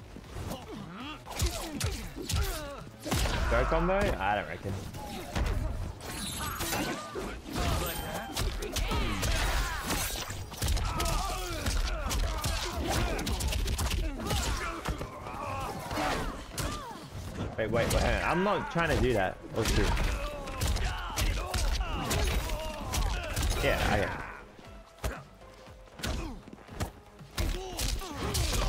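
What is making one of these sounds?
Video game punches and kicks land.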